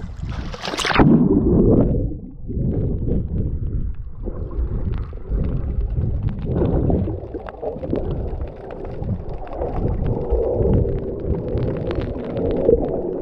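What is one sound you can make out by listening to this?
Water gurgles and rumbles in a muffled, underwater way.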